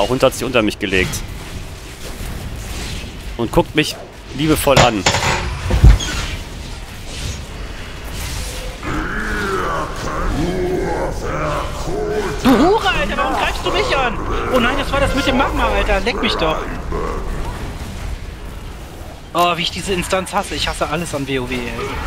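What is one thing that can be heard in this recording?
Game spells and combat effects clash and crackle.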